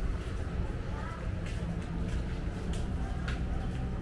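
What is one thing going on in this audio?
A man's footsteps slap on wet pavement nearby.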